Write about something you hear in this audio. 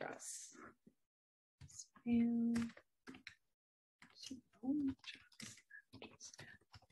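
A young woman talks calmly and closely into a microphone, with short pauses.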